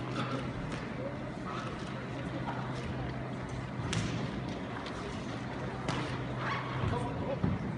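Men in a crowd talk and call out in an echoing hall.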